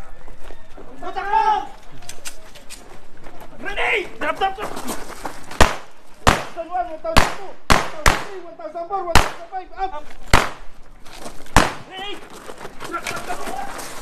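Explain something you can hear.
A man shouts commands.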